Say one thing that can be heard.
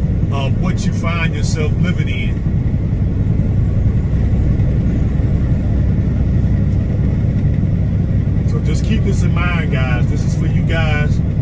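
A car's engine and tyres rumble steadily on a highway.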